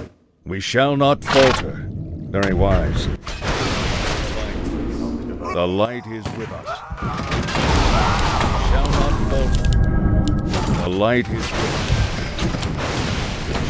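Magic blasts burst with loud crackling bangs.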